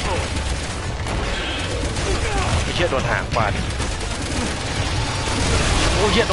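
A monster growls and roars loudly.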